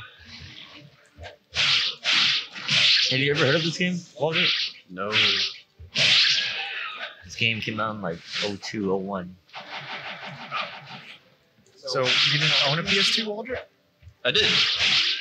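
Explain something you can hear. Swords clash and slash repeatedly.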